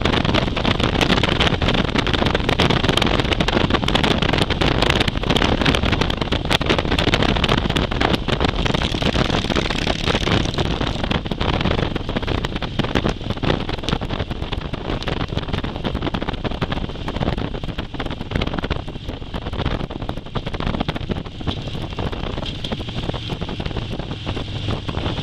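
A motorcycle engine drones steadily up close while riding at speed.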